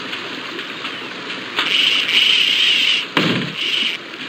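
A wooden bridge swings down and thuds into place.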